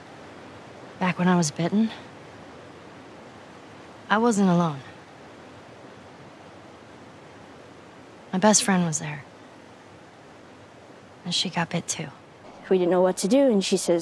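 A young girl speaks earnestly, close by.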